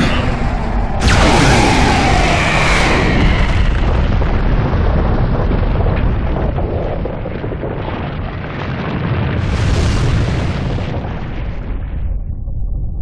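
A huge explosion roars and rumbles on and on.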